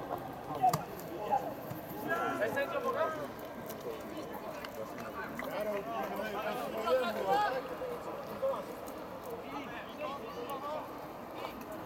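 Young men call out to each other across an open field, from a distance.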